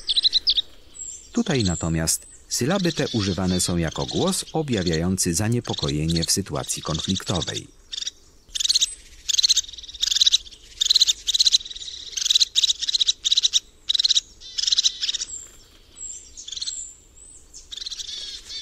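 A small bird chirps and trills in quick bursts.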